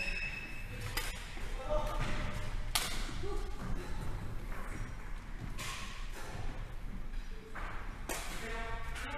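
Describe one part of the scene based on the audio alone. Badminton rackets smack a shuttlecock back and forth in a large echoing hall.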